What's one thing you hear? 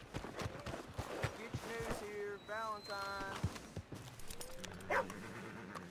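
A horse's hooves thud on the ground.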